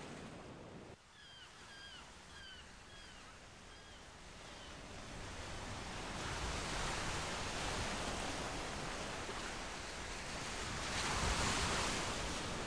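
Waves wash and roar onto a shore.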